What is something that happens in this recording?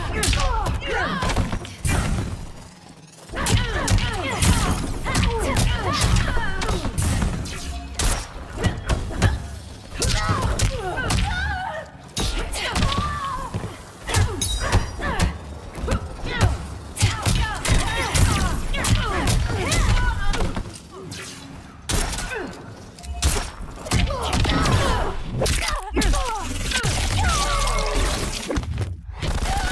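Punches and kicks land with heavy thuds in a fighting game.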